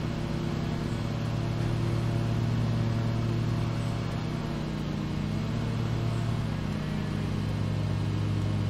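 A mower engine drones steadily.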